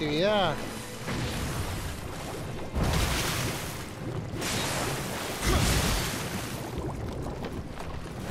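Blades clash and slash in quick strikes.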